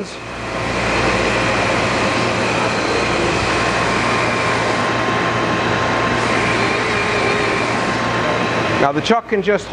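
A grinding wheel grinds against metal with a steady hiss.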